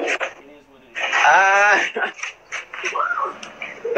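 A young man laughs loudly over an online call.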